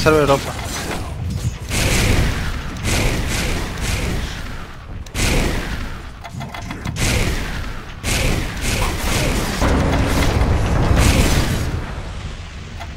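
Fantasy battle sound effects crackle and boom in quick bursts.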